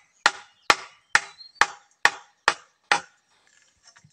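A knife chops sharply into bamboo in quick, even blows.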